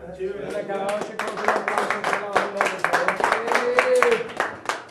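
People clap their hands.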